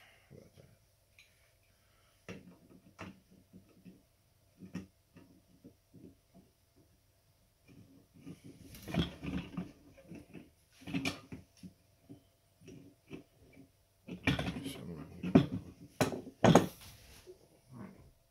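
A metal wrench clanks and scrapes against a metal motor housing.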